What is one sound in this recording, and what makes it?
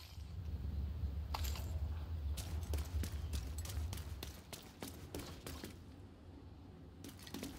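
Heavy footsteps run across wet pavement.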